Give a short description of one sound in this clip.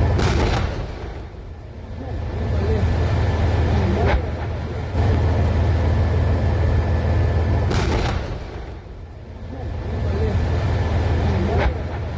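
A huge explosion booms and rumbles nearby.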